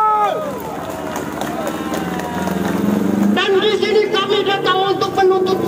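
A crowd of men chants and sings loudly outdoors.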